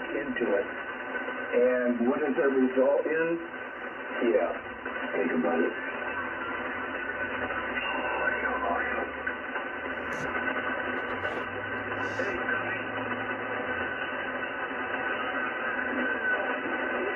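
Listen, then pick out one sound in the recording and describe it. A radio receiver hisses and crackles with static.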